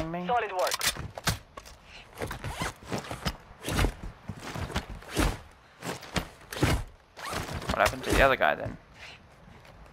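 Footsteps crunch quickly over dirt and rock.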